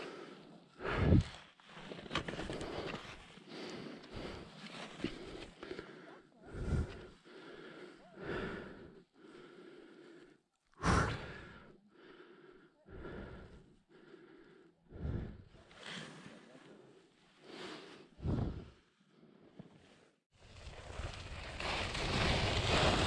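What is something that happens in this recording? Skis scrape and hiss over hard snow in bursts as a skier turns.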